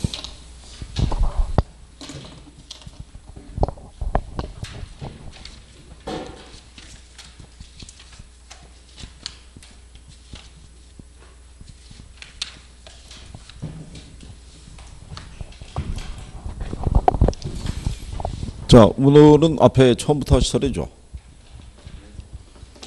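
A middle-aged man speaks into a handheld microphone, in bursts with pauses.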